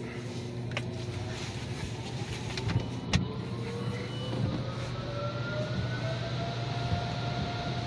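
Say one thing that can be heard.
Car wash machinery hums steadily.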